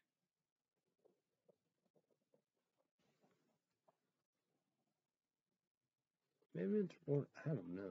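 A young man speaks softly close by, then louder.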